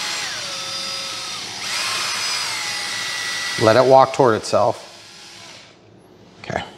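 A cordless drill whirs, its pitch rising and falling.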